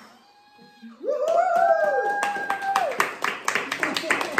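A group of young people cheer loudly.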